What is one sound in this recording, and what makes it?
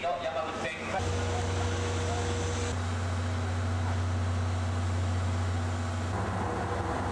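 A steam locomotive hums and rumbles while standing.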